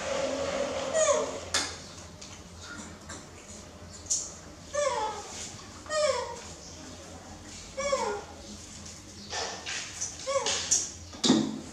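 A young monkey gives short, high, falling squeaks.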